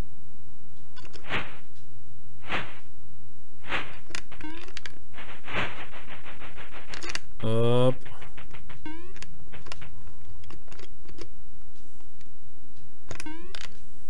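Retro video game sound effects beep, whoosh and chirp.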